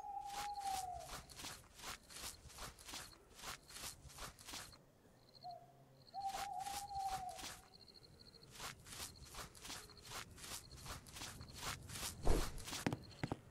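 Game footsteps thud on grass.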